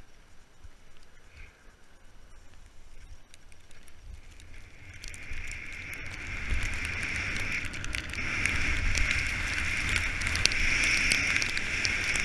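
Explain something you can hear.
Wind rushes past as a skier speeds downhill.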